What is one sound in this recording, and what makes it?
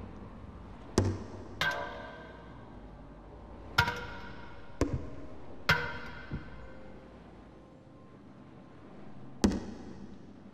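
A metal canister clatters and rolls on a hard floor.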